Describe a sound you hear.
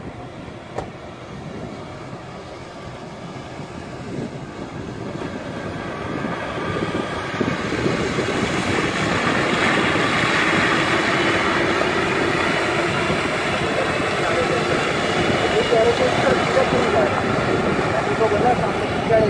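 An off-road vehicle's engine roars as it drives closer through shallow water.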